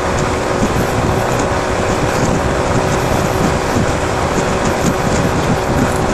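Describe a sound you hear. A motorcycle engine drones steadily while riding at speed.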